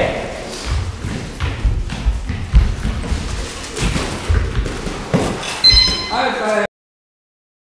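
Footsteps shuffle and squeak on a padded floor.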